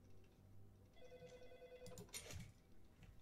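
A game menu gives a short ringing chime.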